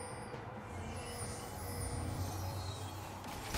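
A fiery bolt whooshes past.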